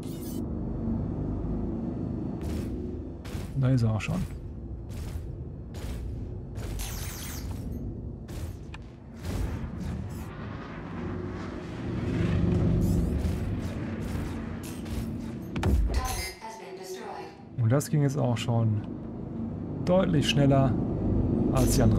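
A spaceship engine hums low and steadily.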